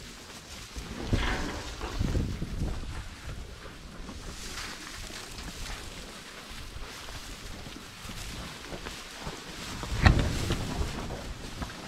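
Cattle munch on hay.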